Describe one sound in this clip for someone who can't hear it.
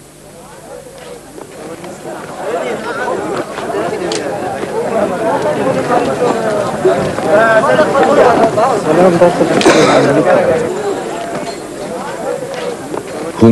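A crowd of mourners wails and chants together.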